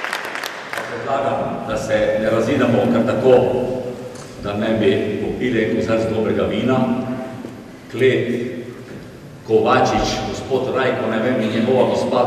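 An elderly man speaks into a microphone over loudspeakers in an echoing hall.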